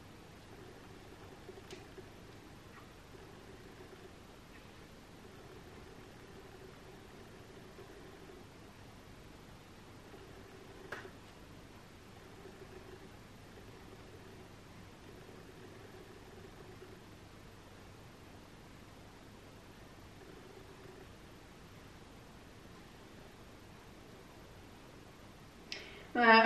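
A young woman speaks calmly and softly nearby.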